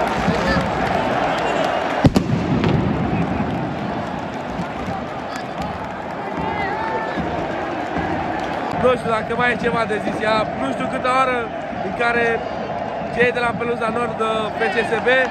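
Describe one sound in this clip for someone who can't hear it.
A large crowd roars and chants in a huge open stadium.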